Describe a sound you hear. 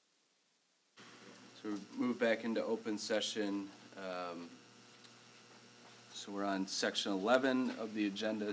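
A man speaks calmly through a microphone in a room with a slight echo.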